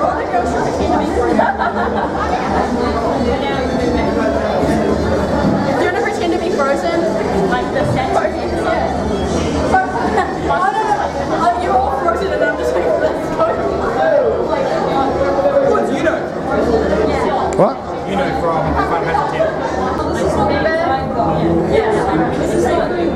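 A crowd of young people chatters and laughs nearby.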